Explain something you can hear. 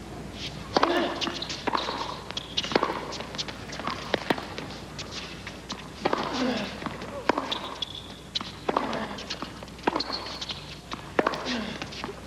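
A man grunts loudly with each hard swing.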